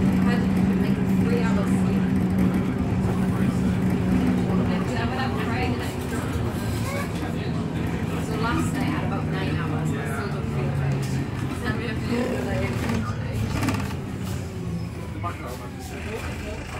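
A bus interior rattles and creaks as it moves.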